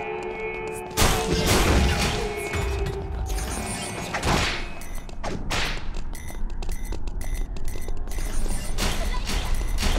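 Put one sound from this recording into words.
Loud blasts and impacts burst in quick succession.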